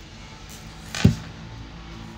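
An arm thumps once onto a table close by.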